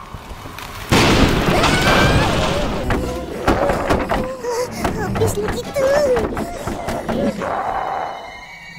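Young boys cry out in fright.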